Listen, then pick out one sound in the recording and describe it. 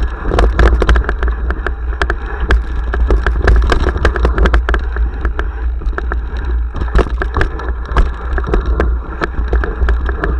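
A bicycle rattles and clatters over a bumpy dirt trail.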